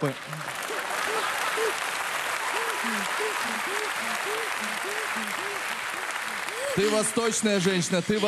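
A large audience applauds loudly in a big hall.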